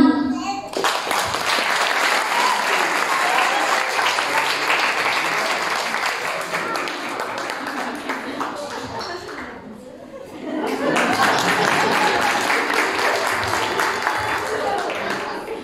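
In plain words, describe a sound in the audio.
Young children sing together loudly.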